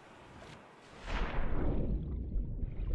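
Water splashes loudly as a swimmer plunges under.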